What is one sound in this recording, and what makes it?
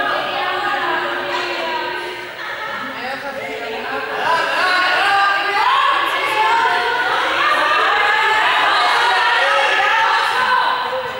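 Young men and women talk together in a large echoing hall.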